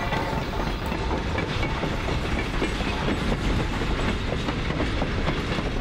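A diesel locomotive rumbles steadily as it hauls a train.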